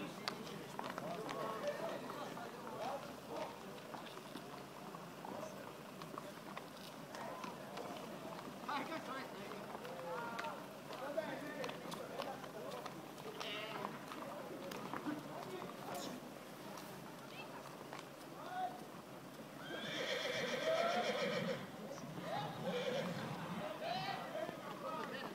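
Horses' hooves clop on asphalt at a walk.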